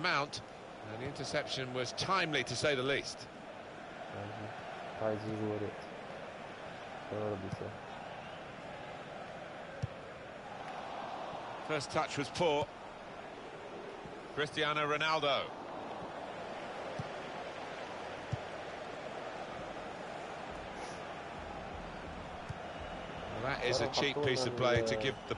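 A large stadium crowd murmurs and cheers steadily in the distance.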